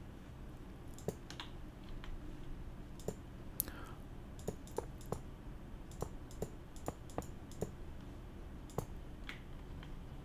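Blocks are set down with soft, quick clicks.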